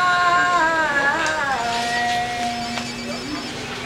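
A man chants a prayer in a long, wavering voice.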